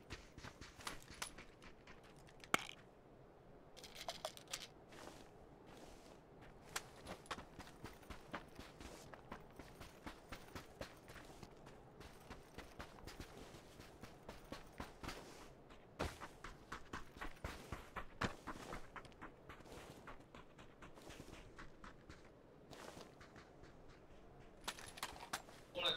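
Footsteps crunch quickly over sand.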